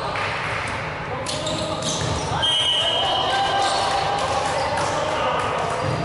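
Young players shout and call out across the hall.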